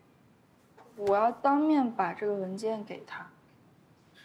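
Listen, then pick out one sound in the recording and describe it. A young woman speaks up sharply, close by.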